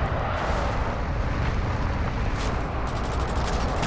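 Tyres crunch over dirt and gravel.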